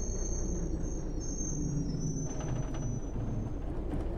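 Bus tyres thump over a railway crossing.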